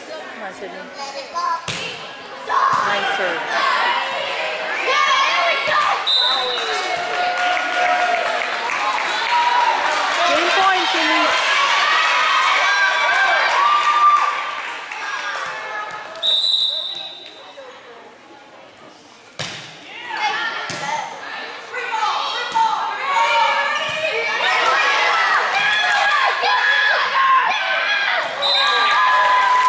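A crowd of young women and spectators shouts and cheers loudly in a large echoing hall.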